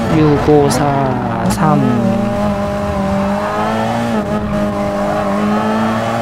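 A racing car engine screams at high revs, dropping in pitch as the car brakes and shifts down, then holding steady.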